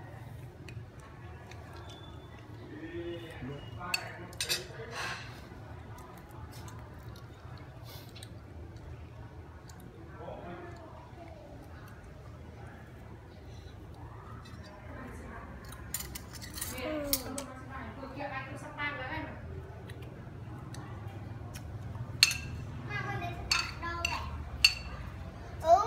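A spoon clinks and scrapes against a dish.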